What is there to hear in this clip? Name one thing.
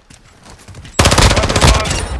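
A rifle fires rapid, loud shots.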